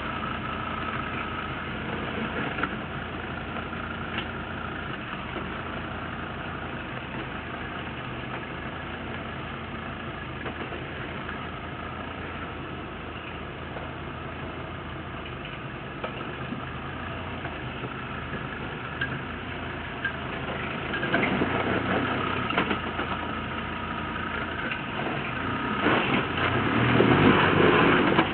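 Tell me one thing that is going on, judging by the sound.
Tyres crunch over dirt and rock.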